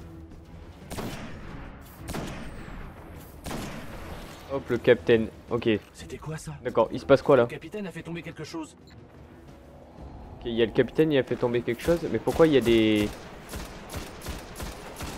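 Gunshots fire in bursts.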